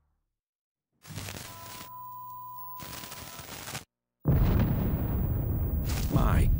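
Television static hisses and crackles.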